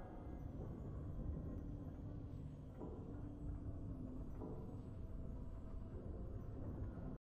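Triumphant game music plays steadily.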